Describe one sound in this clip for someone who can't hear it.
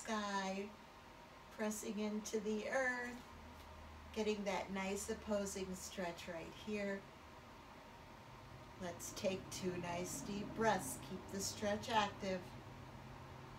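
An elderly woman speaks calmly and clearly, close by.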